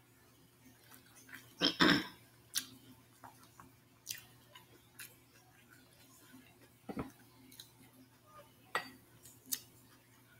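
A woman chews and smacks her lips close by.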